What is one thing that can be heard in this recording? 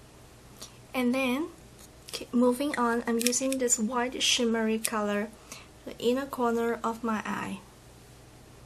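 A young woman speaks calmly close to a microphone.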